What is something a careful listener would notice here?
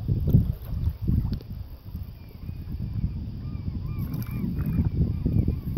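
Wind gusts buffet the microphone outdoors on open water.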